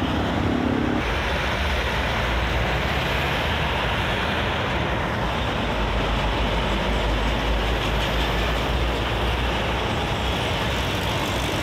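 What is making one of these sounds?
Heavy traffic rushes steadily past on a highway.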